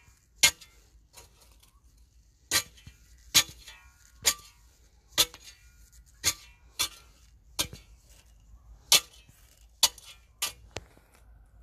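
A metal rod knocks sharply against gravel, again and again.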